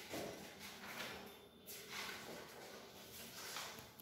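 Paper pages rustle as a book is turned.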